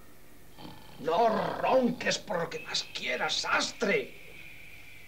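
A man sobs and gasps.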